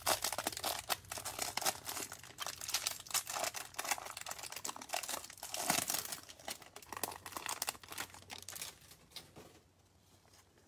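A plastic wrapper crinkles and rustles close by.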